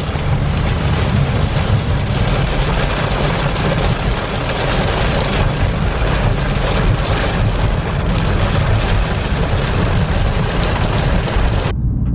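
Heavy rain patters on a car windshield.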